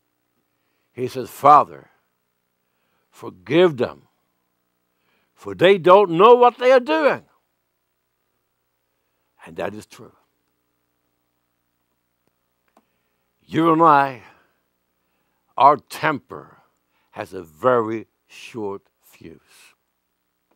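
An elderly man preaches emphatically into a microphone, with pauses between phrases.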